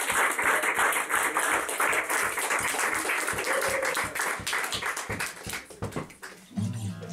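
A man strums an acoustic guitar in a fast, steady rhythm.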